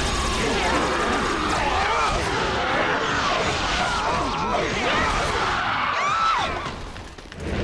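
Blades swish and clash in a loud, crowded battle.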